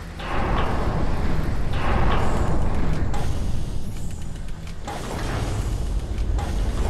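A heavy gun fires loud booming shots.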